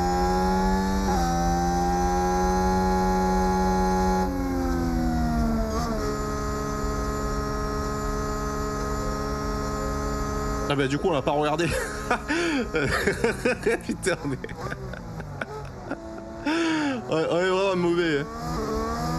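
A racing car engine whines steadily at high revs, dropping in pitch as it shifts gear.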